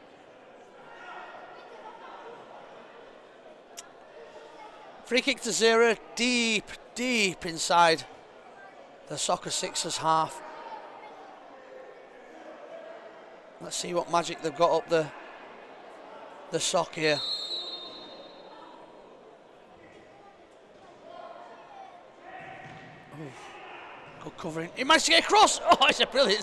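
A crowd murmurs faintly in a large echoing hall.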